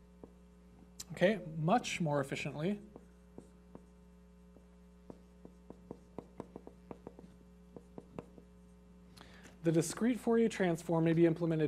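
A man speaks calmly, close to a microphone, as if lecturing.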